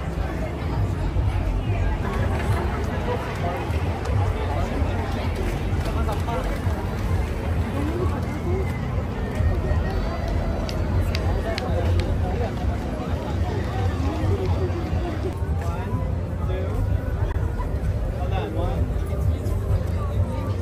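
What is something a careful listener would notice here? A crowd of men and women chatters all around outdoors.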